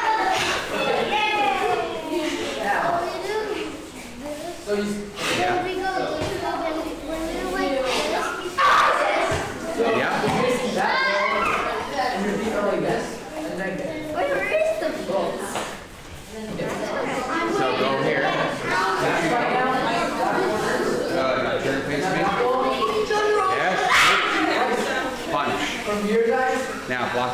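Bare feet patter and shuffle on a mat.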